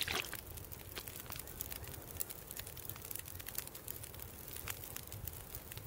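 Water is gulped down in slow swallows.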